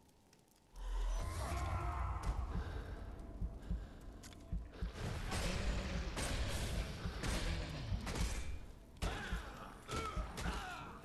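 A large monster growls and roars.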